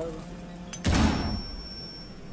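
A heavy melee blow thuds loudly.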